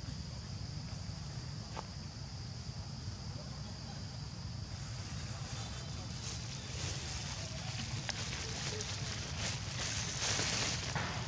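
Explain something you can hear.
A paper carton crinkles in a monkey's hands.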